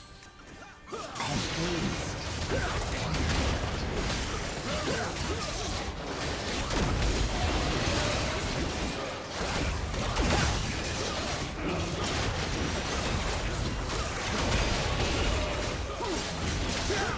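Magic spells burst, whoosh and crackle in a busy fight.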